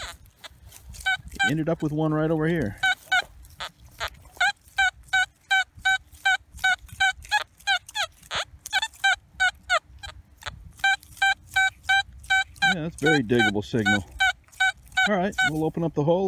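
A metal detector beeps in quick, even pulses.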